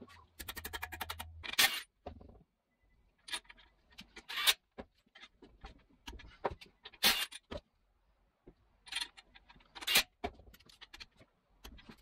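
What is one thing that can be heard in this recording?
Metal tools clink against a gear housing.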